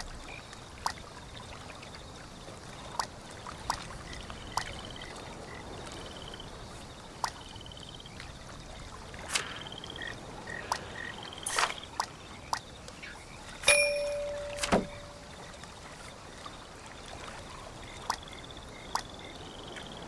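Soft interface clicks sound as menu items are selected.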